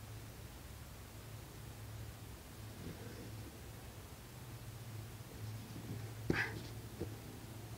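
Footsteps thud softly on a padded mat.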